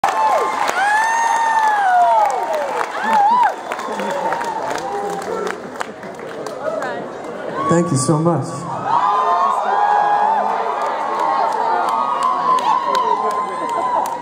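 An audience murmurs and cheers near the recorder.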